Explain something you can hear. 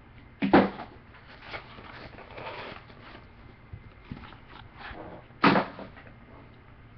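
A hard plastic card case clacks and taps on a desk.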